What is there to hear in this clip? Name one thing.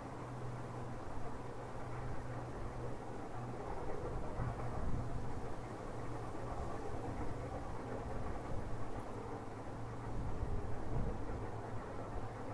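A steam train rumbles along in the distance.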